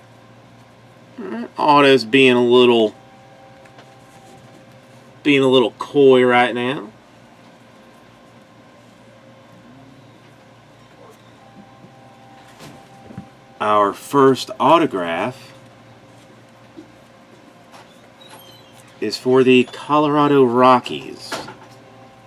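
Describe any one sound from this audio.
Trading cards rustle and tap softly as hands sort them.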